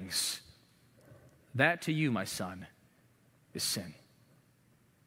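A man speaks with emphasis through a microphone.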